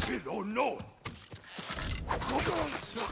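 A blade slashes and thuds into a body.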